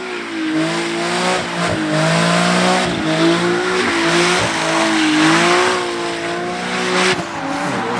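Tyres screech as they spin on the pavement.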